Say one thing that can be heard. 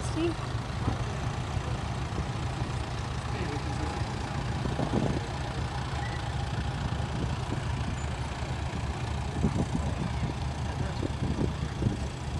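Vintage Ferguson tractor engines chug as the tractors drive past.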